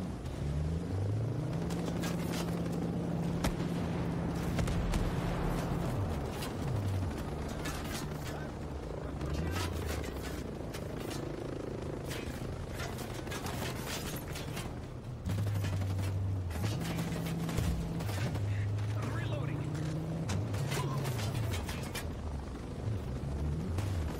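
An armored vehicle's engine rumbles and shifts pitch as it drives.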